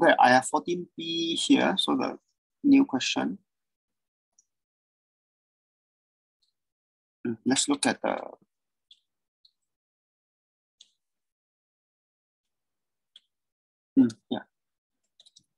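A man talks calmly into a microphone, in short bursts with pauses.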